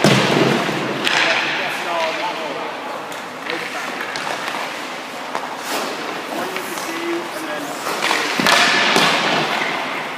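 A hockey stick taps on the ice.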